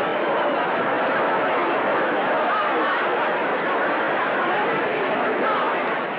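A man and a woman talk close by.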